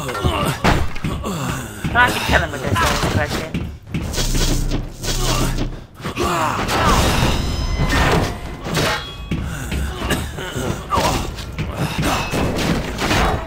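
A wooden staff swings and strikes with heavy thuds.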